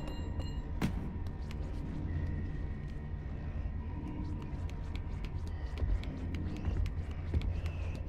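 Small footsteps patter lightly on a tiled floor.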